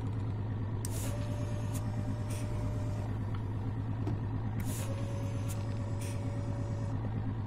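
A crane's motor whines as its arm swings.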